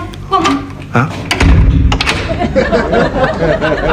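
A door closes with a thud.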